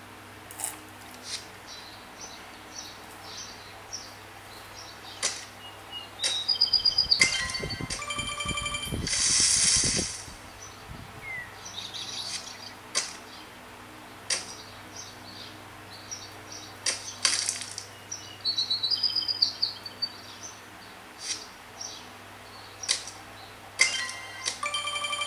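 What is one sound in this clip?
Game sound effects chime and beep from a tablet's speaker.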